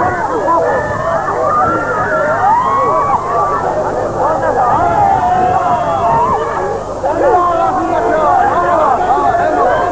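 A crowd of men and women shouts and sings loudly nearby.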